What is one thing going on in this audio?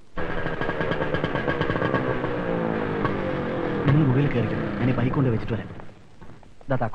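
A motorcycle engine idles and revs nearby.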